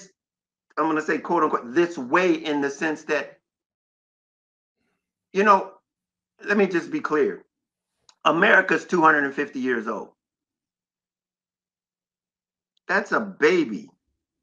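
An older man speaks with animation over an online call, in short bursts with pauses.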